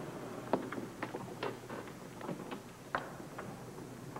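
A door handle rattles and clicks.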